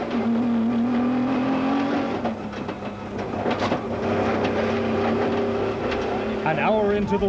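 Mud and gravel splatter against the car.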